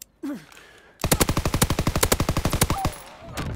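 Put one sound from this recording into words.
A submachine gun fires a rapid burst close by.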